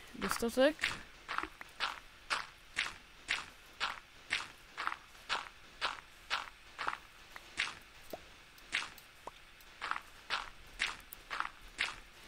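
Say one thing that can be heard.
Sand blocks crunch in quick, regular thuds as a shovel digs.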